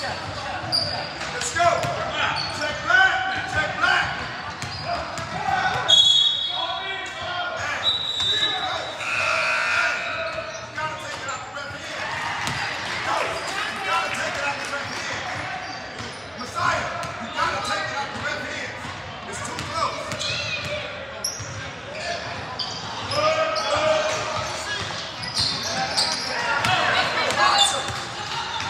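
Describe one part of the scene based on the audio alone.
Spectators chatter and call out throughout a large echoing gym.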